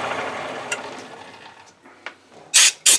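A metal lathe spins with a whirring hum and winds down.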